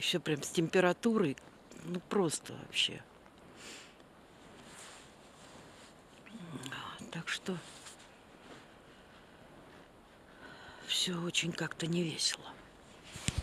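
An older woman talks close up.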